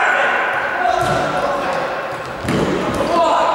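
A ball is kicked with a dull thump.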